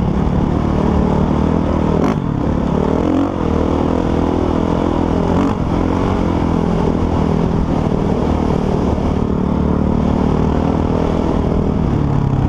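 A dirt bike engine drones and revs up and down close by.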